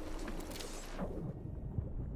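Sound turns dull and muffled under water.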